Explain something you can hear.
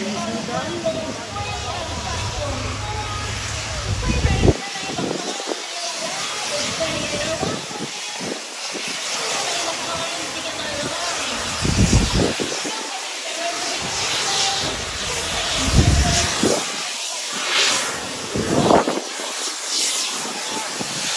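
A steam locomotive chuffs in heavy bursts as it pulls into the station.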